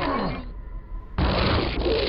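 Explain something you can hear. A lightning gun crackles and buzzes as it fires.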